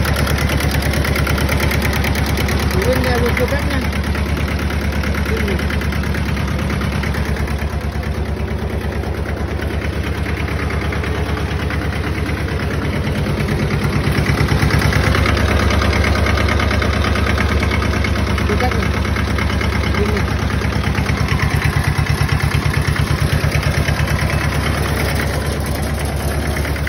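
A small engine idles with a steady, rapid chugging throb.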